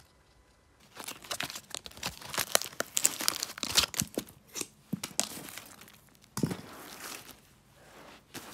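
Paper crinkles and rustles as it is handled up close.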